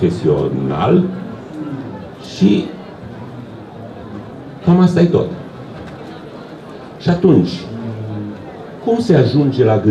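An elderly man speaks calmly into a microphone in bursts, with pauses, heard through a loudspeaker.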